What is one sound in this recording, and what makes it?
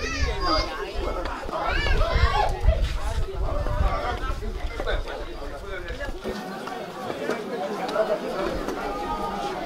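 A group of men sing together nearby, outdoors.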